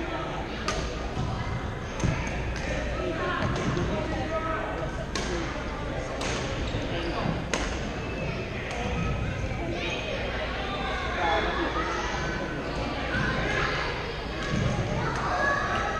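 Players' shoes squeak and thud on a hard floor.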